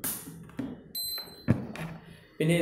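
A charger gives a short high electronic beep.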